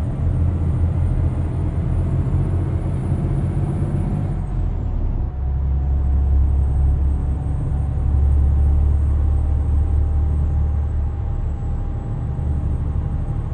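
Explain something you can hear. Tyres roll steadily along a road.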